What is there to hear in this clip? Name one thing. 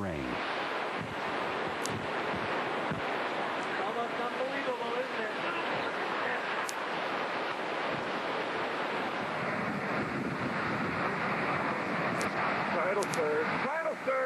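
Heavy rain lashes down in the storm.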